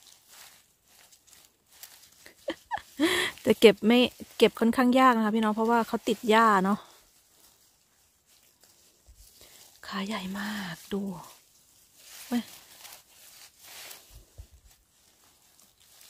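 Dry leaves and grass rustle under a hand.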